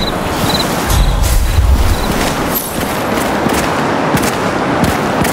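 Footsteps run quickly over soft ground.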